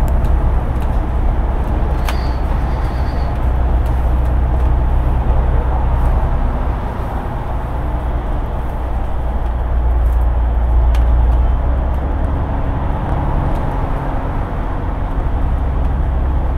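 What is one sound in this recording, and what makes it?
A bus engine rumbles steadily from inside as it drives along.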